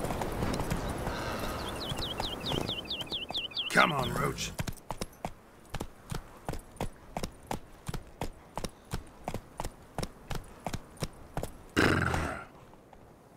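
A horse's hooves beat steadily as it canters over soft ground.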